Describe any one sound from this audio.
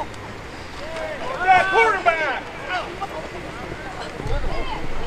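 A small crowd of spectators cheers and yells nearby.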